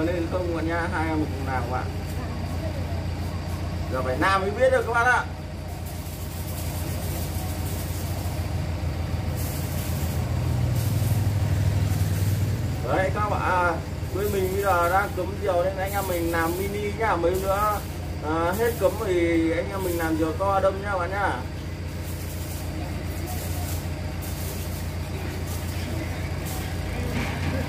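A knife scrapes and splits thin bamboo strips.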